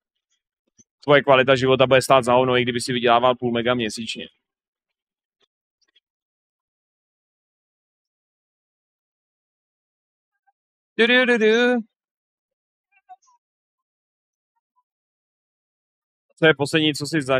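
A young man talks with animation close to a microphone, in short bursts.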